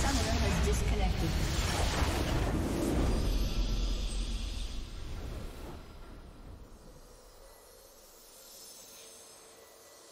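A triumphant fanfare swells and then fades.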